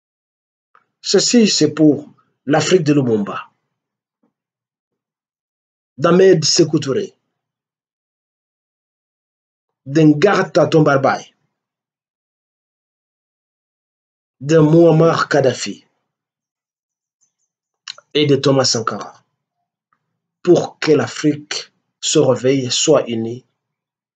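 An elderly man speaks forcefully into a close microphone, in short bursts with long pauses.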